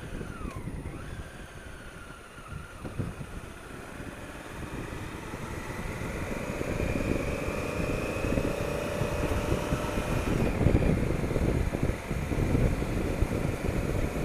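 A motorcycle engine hums and rises in pitch as the bike speeds up.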